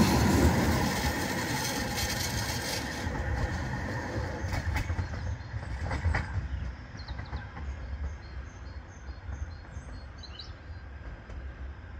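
A tram rolls away into the distance, fading.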